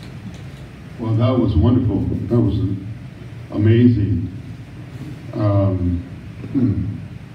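An elderly man speaks slowly and calmly into a microphone in a room with a slight echo.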